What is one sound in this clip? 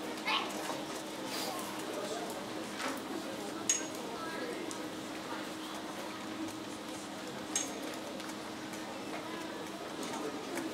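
An audience of adults and children murmurs and chatters quietly in a large hall.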